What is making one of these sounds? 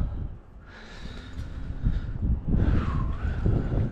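Hands scrape and slap against rough rock.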